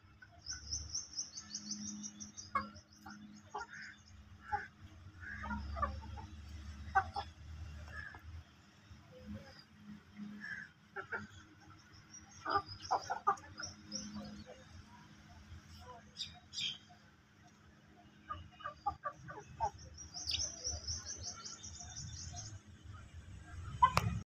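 Chickens cluck softly while feeding close by.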